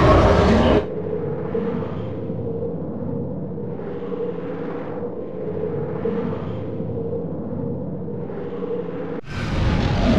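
A figure swims underwater with a muffled, rhythmic swishing.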